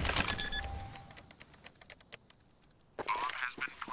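A bomb's keypad beeps quickly and evenly.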